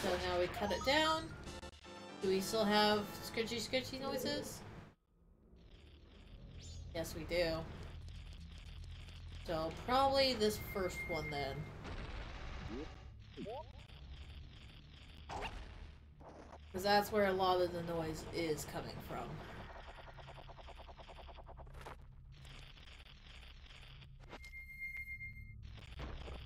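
Video game music plays steadily with chiming effects.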